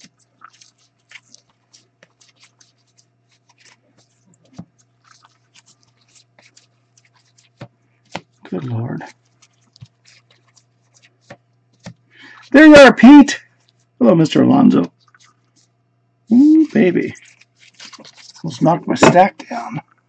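Trading cards rustle and slide against each other in a pair of hands.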